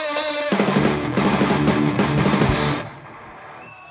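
A rock band plays loudly with drums and electric guitars.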